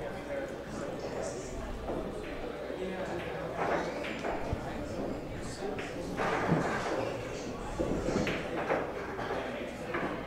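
Footsteps tread slowly on a wooden floor.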